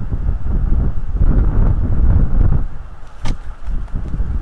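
An eagle's wings beat loudly as it takes off from a nest.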